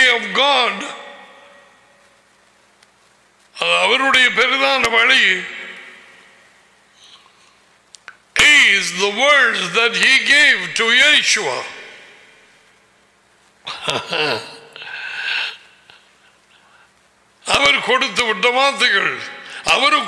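An older man speaks forcefully into a close microphone, in bursts with pauses.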